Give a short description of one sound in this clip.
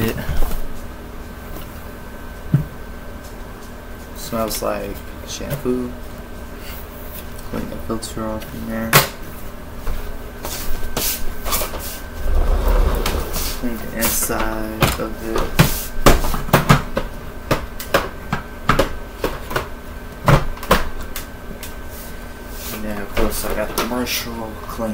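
Plastic vacuum cleaner parts click and clatter as they are taken apart and fitted together.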